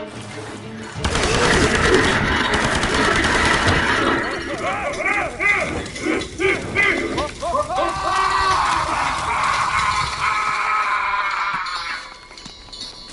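A fire roars and crackles loudly.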